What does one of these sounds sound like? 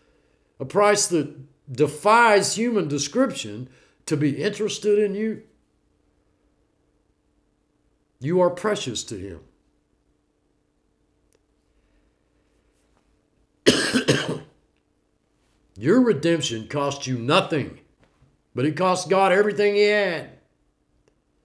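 An elderly man speaks calmly and expressively into a nearby microphone, with long pauses.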